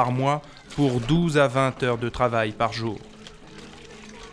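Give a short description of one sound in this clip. Water splashes from a hand pump into a bucket.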